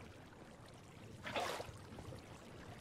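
Water splashes as it is poured from a bucket.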